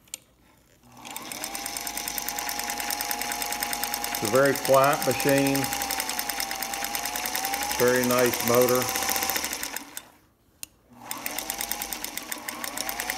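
A sewing machine runs with a fast, even clatter of stitching.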